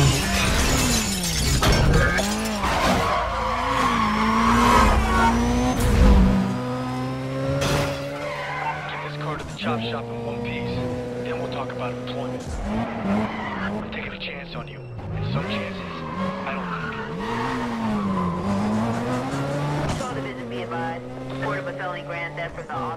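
A car engine revs loudly, rising and falling as gears change.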